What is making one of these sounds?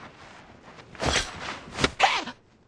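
A man shouts fiercely.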